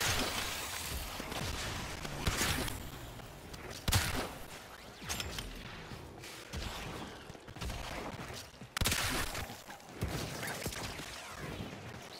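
Blades swish and clang in quick, heavy strikes.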